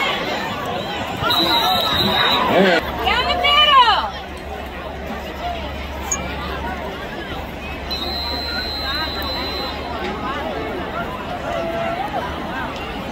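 A large crowd murmurs and cheers in an outdoor stadium.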